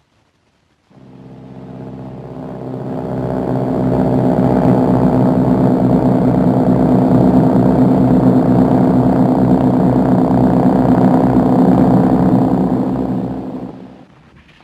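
The engines of many propeller planes drone loudly overhead, swelling and then fading.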